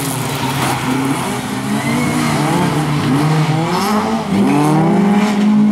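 Several race car engines roar and rev loudly.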